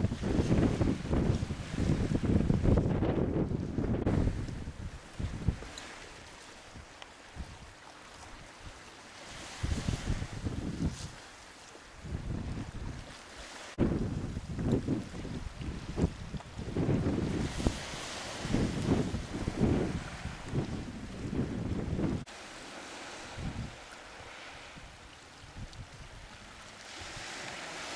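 Choppy sea water laps and splashes.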